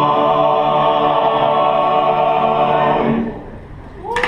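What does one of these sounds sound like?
A group of men sings together in chorus.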